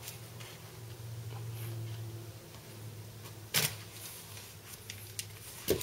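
A boy cuts through packing tape with a small knife.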